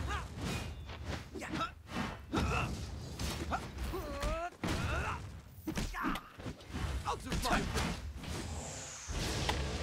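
Magic blasts crackle and whoosh.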